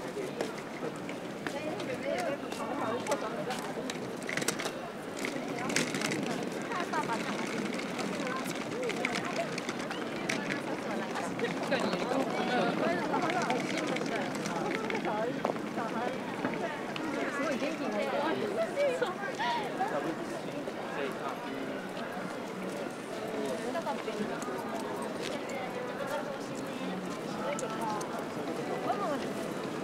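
Footsteps shuffle and tap on pavement close by.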